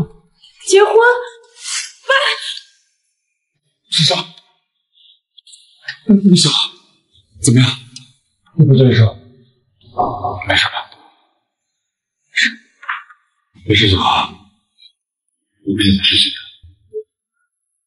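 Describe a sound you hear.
A young man speaks with concern, close by.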